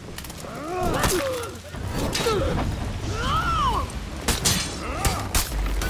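Metal swords clash and clang in a sword fight.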